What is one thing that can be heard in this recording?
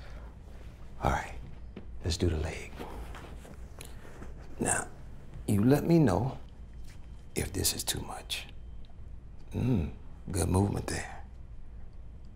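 A middle-aged man speaks calmly and quietly nearby.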